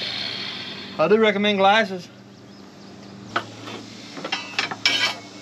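A man speaks nearby in a lively voice.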